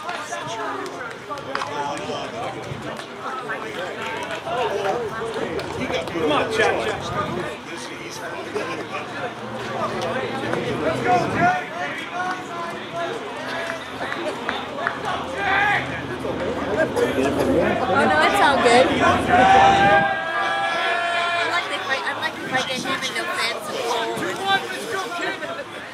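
Young men chatter and call out across an open field.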